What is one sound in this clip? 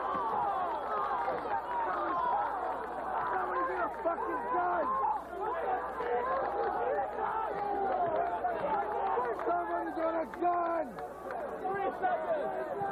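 A large crowd of young people chatters and shouts loudly outdoors.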